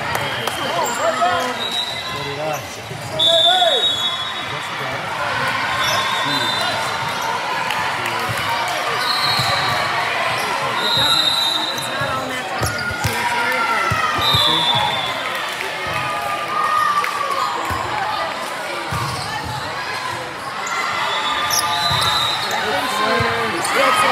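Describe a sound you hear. Young women chatter and call out to each other in a large echoing gym.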